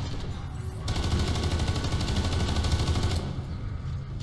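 A heavy gun fires in a rapid burst.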